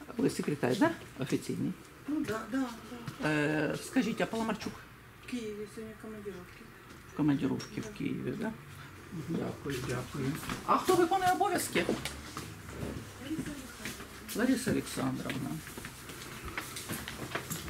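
A middle-aged woman speaks close by, in short animated bursts.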